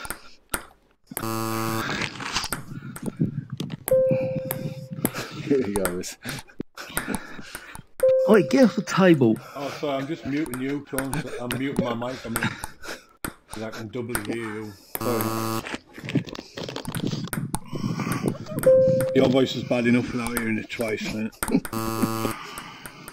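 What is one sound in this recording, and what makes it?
A ping-pong ball clicks against paddles and a table in a quick back-and-forth.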